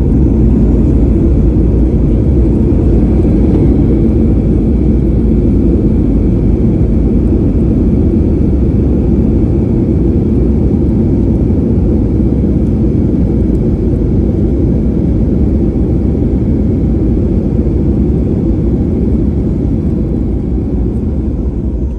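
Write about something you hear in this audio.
Aircraft wheels rumble along a runway.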